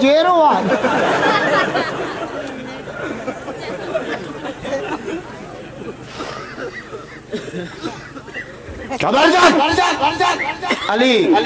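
A man sings with feeling through a loudspeaker, his voice echoing outdoors.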